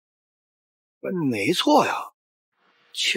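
A middle-aged man speaks sternly.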